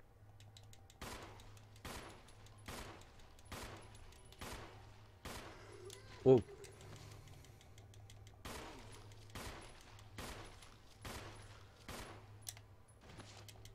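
A pistol fires shot after shot at a steady pace, each shot ringing off hard walls.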